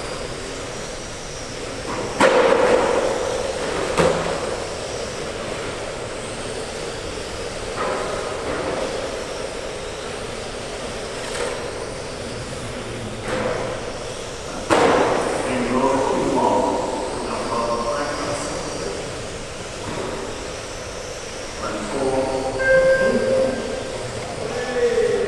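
Small electric model cars whine as they race around a track in a large echoing hall.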